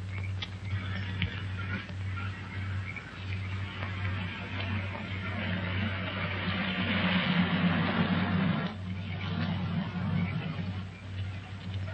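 A woman's footsteps tap on a road.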